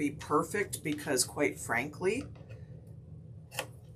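Scissors snip through tape.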